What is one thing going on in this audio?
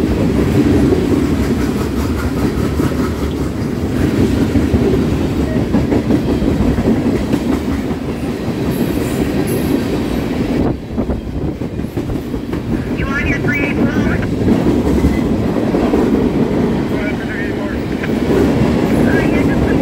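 A freight train rumbles past close by, wheels clattering over the rail joints.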